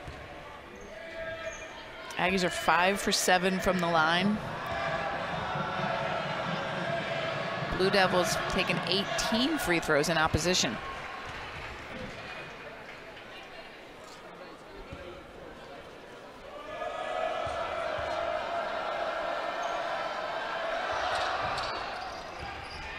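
A large crowd cheers and chants loudly in an echoing arena.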